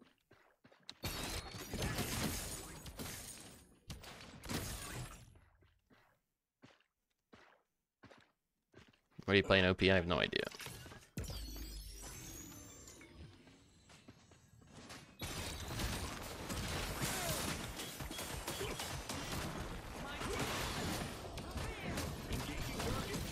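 Magic blasts whoosh and crackle in bursts.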